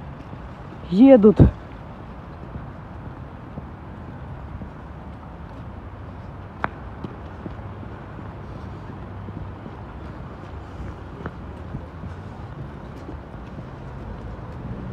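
Traffic rumbles steadily in the distance outdoors.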